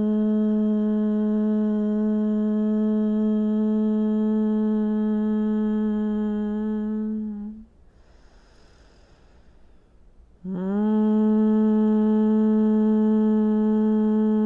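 A woman hums a long, steady low note close to a microphone, pausing once for breath.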